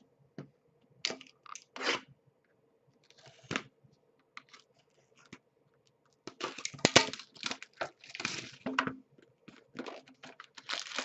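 Cardboard packaging rustles and scrapes as hands handle a box.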